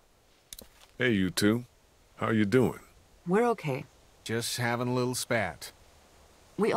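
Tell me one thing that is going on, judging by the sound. A man speaks cheerfully in a friendly greeting.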